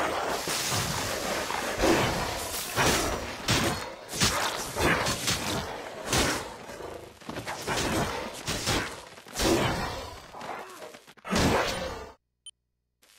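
Electric blasts crackle and boom again and again.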